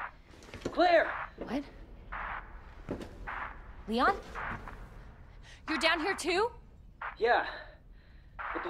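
A young woman speaks with urgency.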